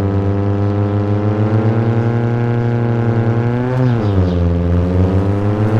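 A car engine hums steadily, rising slightly in pitch, then drops as the gear shifts.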